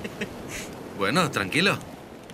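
A young man speaks up close.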